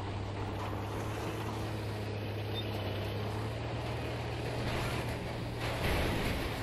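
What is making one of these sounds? Tank tracks clatter and squeak over the ground.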